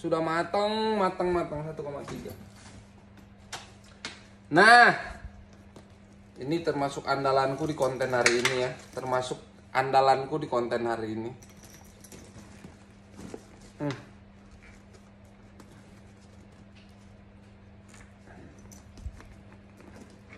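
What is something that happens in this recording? Leather bag straps rustle and clink as a hand handles a bag.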